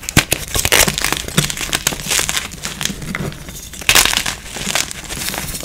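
Hands crumble soft chalk, which crunches and rustles.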